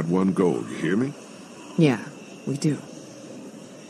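A man speaks firmly in a low voice.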